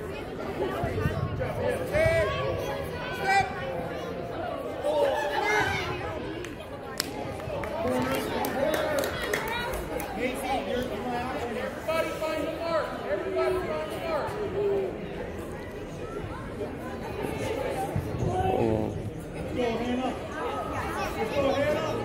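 Spectators shout and cheer throughout in a large echoing indoor hall.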